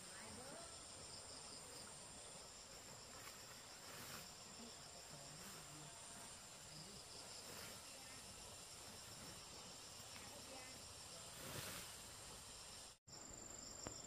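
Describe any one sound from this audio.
A plastic tarp rustles and crinkles.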